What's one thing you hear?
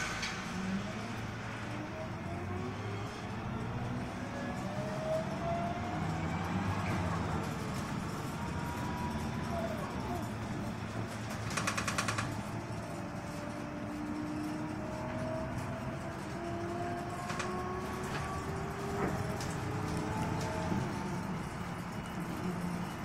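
A bus engine hums and whines as the bus drives along.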